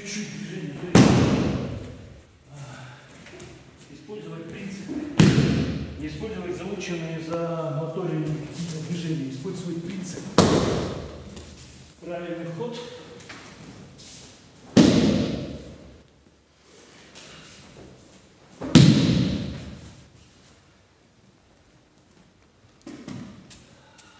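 Bodies slam down hard onto a padded mat with loud, echoing thuds.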